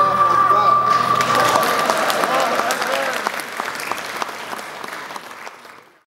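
An audience applauds in a large hall, and the applause slowly fades.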